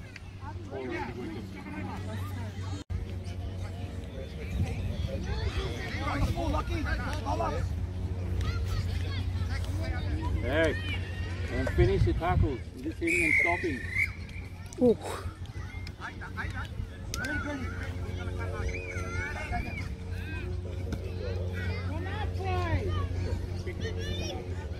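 Children and adults talk and call out across an open field outdoors.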